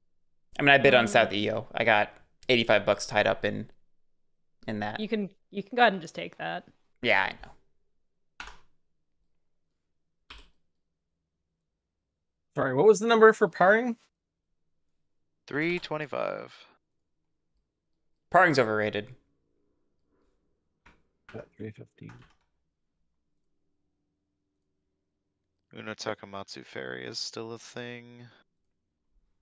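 A young man talks calmly into a close microphone, in bursts with pauses.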